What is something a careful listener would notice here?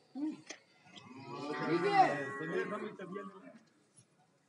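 A cow moos loudly.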